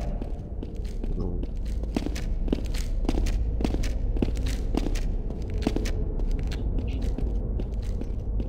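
Footsteps clank quickly on a metal walkway.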